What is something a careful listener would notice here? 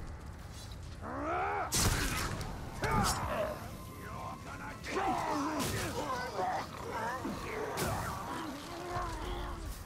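A sword slashes and strikes with sharp impacts.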